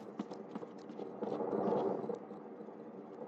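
Quick footsteps patter on a hard rooftop.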